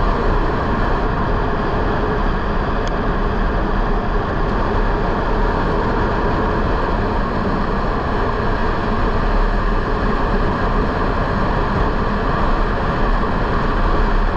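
A motorcycle engine roars steadily close by.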